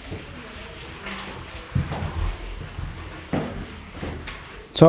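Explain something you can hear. A felt eraser rubs across a chalkboard.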